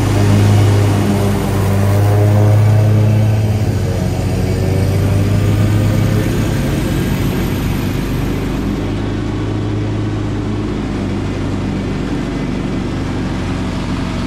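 A mower's blades whir through thick grass.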